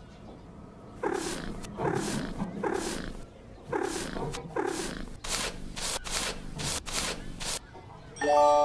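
A brush scrubs back and forth on fur.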